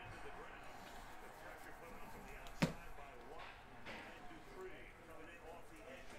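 Trading cards slide against each other as they are flipped through.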